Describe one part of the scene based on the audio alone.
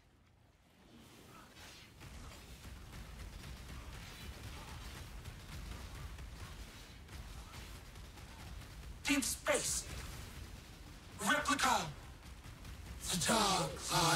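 Fiery blasts roar and crackle.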